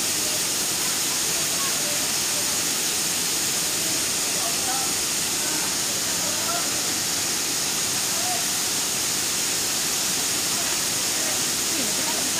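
A waterfall rushes and splashes steadily close by.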